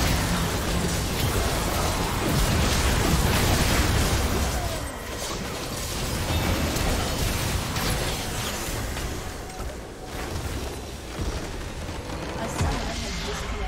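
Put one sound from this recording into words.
Game battle effects crash and blast rapidly.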